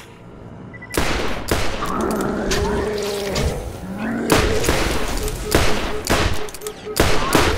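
A gun fires loud rapid shots.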